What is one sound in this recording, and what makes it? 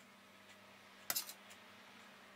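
A metal spoon clinks against a metal bowl.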